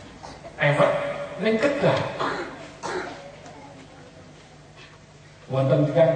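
A man speaks with animation into a microphone, heard through a loudspeaker in an echoing hall.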